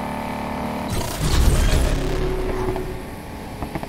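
A loud whoosh bursts as a car speeds through a checkpoint.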